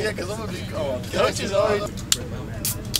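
Young men talk loudly nearby outdoors.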